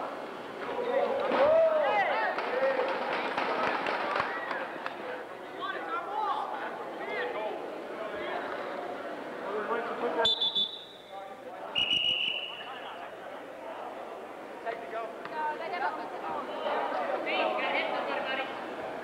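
Several people shout and call out in a large echoing hall.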